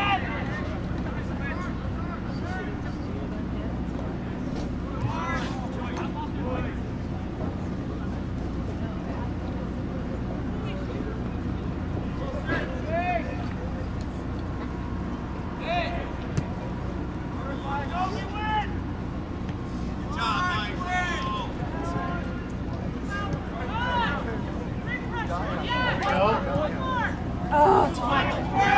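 Young players shout and call to each other across an open outdoor field.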